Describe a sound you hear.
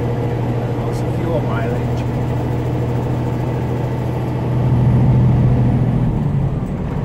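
Tyres roll with a steady rumble on the road.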